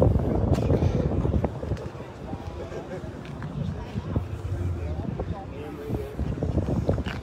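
A crowd of people chatters in the background outdoors.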